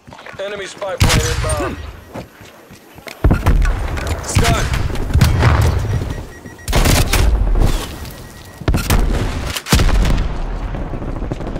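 Gunfire bursts loudly and rapidly.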